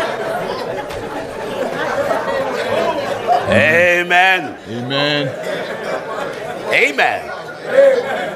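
A crowd of people laughs and murmurs.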